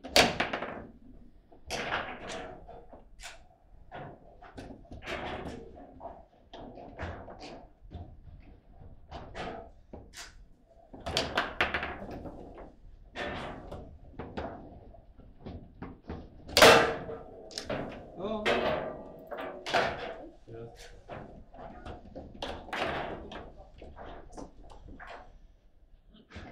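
Foosball rods rattle and a ball clacks sharply against plastic players.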